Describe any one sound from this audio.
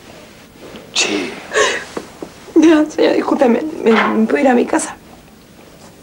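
A young woman speaks in a tearful voice nearby.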